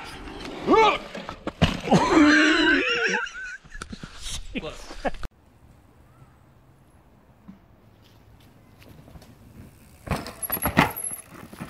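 Bicycle tyres rattle and skid over a dirt trail.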